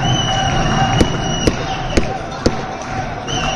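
A volleyball is hit with sharp slaps in a large echoing hall.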